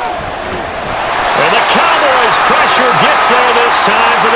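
A stadium crowd roars loudly.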